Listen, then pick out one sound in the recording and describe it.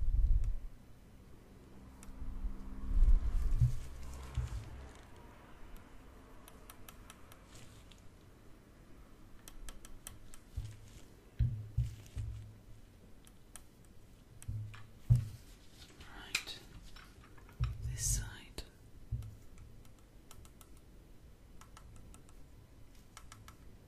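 Plastic taps and clicks close by.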